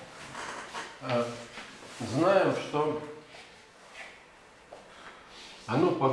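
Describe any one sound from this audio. An older man speaks calmly in an echoing room.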